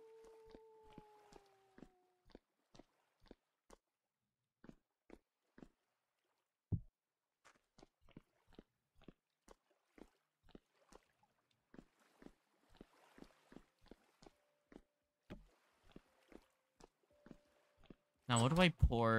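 Footsteps tread steadily over soft ground.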